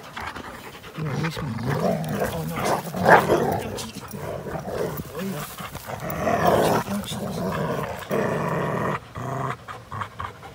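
Two dogs growl and snarl playfully.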